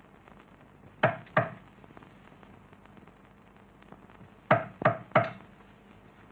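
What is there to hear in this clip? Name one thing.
A man knocks sharply on a wooden door.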